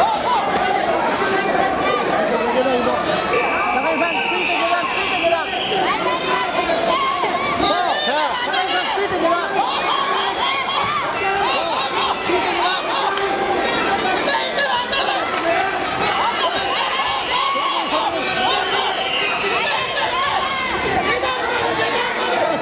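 A crowd of spectators shouts and cheers throughout a large echoing hall.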